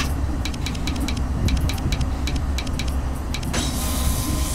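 A metal valve clicks as it turns.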